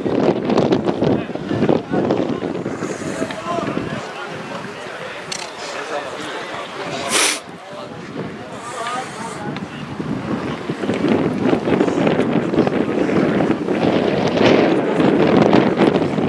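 Skate blades scrape and hiss across ice outdoors.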